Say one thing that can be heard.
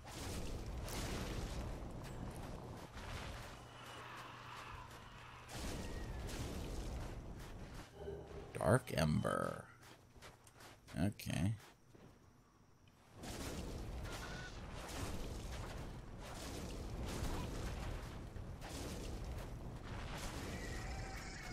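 Fire magic whooshes and crackles.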